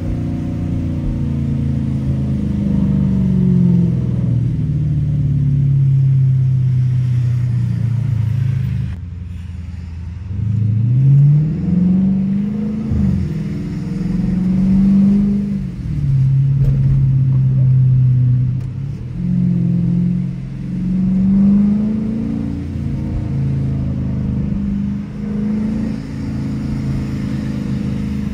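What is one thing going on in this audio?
A V8 muscle car engine rumbles and accelerates through the gears, heard from inside the cabin.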